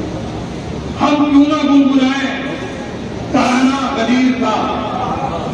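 A middle-aged man recites melodically into a microphone, heard through loudspeakers in an echoing hall.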